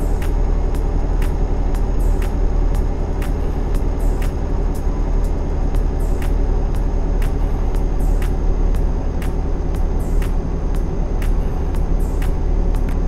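A truck engine drones low and steady.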